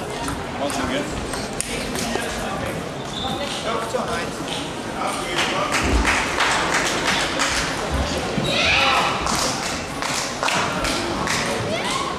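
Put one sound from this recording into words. Table tennis balls click on tables and paddles nearby.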